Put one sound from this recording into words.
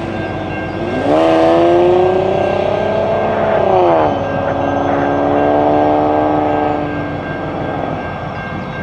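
A locomotive air horn blows.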